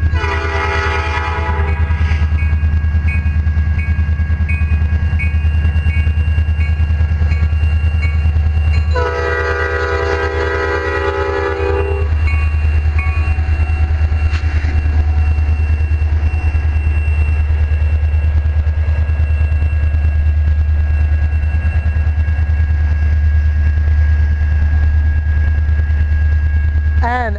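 A diesel locomotive engine rumbles deeply as it passes close by.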